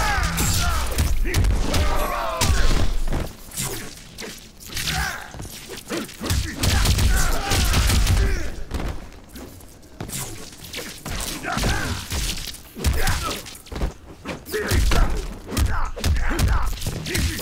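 Punches and kicks thud and crack in a video game fight.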